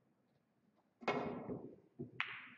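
A cue strikes a pool ball with a sharp knock.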